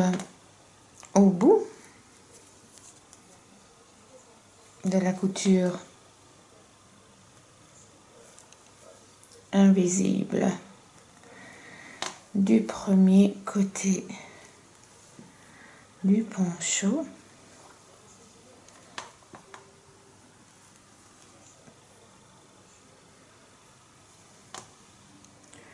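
Yarn rustles softly as it is drawn through knitted fabric.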